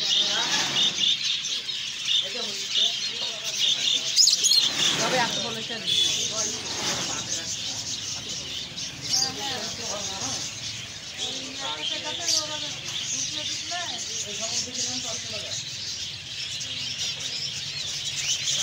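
Many small finches chirp and twitter busily, close by.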